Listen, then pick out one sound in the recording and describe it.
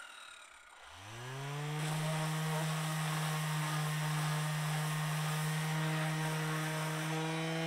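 An electric sander starts up and hums steadily.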